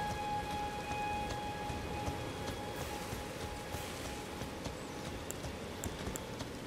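Footsteps crunch through grass and dirt.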